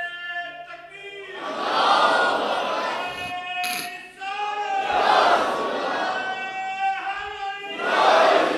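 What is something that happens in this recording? A man chants in a drawn-out, melodic voice through a microphone.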